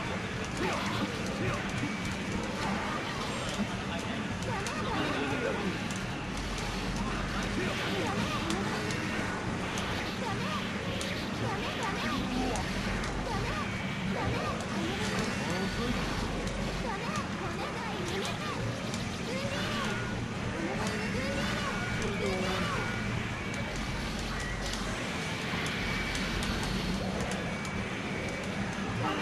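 Fighting game sound effects of hits and slashes ring out rapidly.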